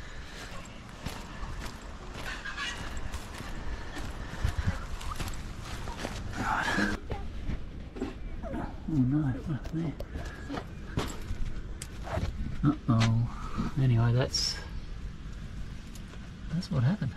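A middle-aged man talks casually close to a microphone.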